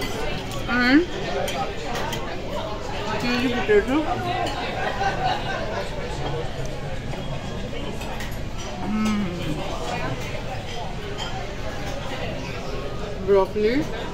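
A knife and fork scrape on a plate.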